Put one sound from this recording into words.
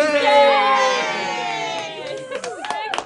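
A group of people cheers and shouts loudly.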